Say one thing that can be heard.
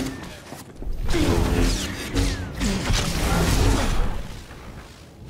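Electric lightning crackles and buzzes.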